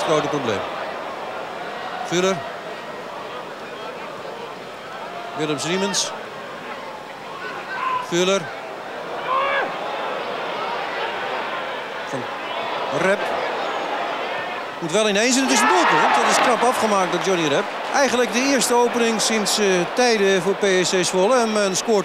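A large crowd roars in a stadium, swelling louder toward the end.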